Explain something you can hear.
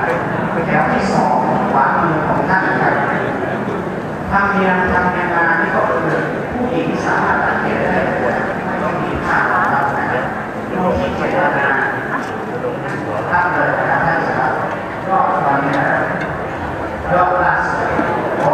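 Several adults talk and murmur nearby in a room.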